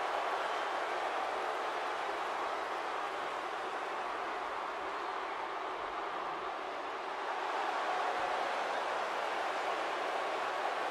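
A large crowd cheers loudly in a big arena.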